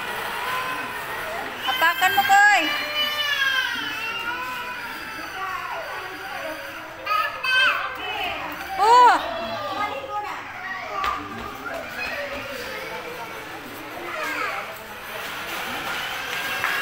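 Young children shout and squeal playfully nearby.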